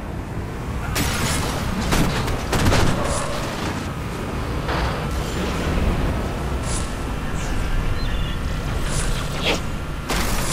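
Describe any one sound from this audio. Gunfire cracks in sharp bursts.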